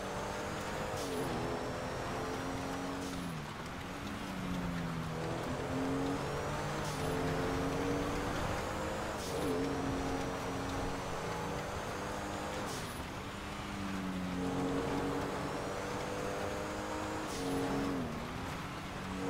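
Tyres hiss over snow.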